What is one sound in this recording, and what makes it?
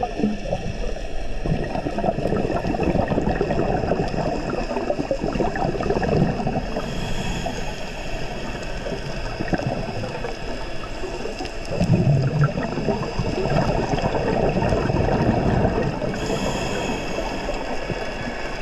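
Scuba regulator bubbles gurgle and rush in bursts underwater.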